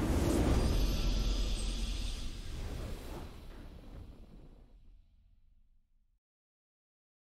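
A triumphant game fanfare plays and slowly fades away.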